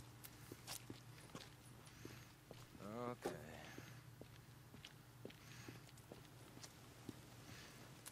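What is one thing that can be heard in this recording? Footsteps tread on pavement at a steady pace.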